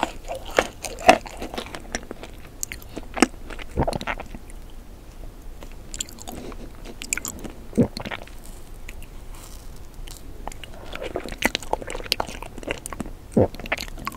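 A plastic spoon scrapes into soft ice cream cake close to a microphone.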